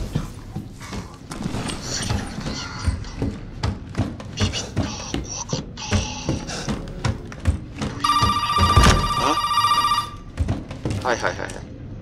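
Footsteps thud on a creaking wooden floor.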